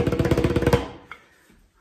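Drumsticks beat a rapid roll on a drum, close by.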